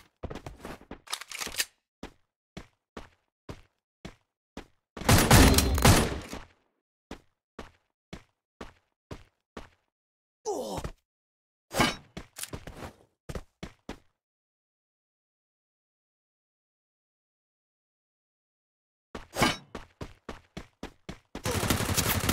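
Footsteps patter quickly and evenly.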